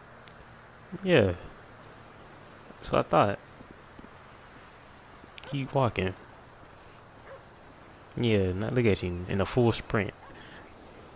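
A man speaks calmly in short bursts nearby.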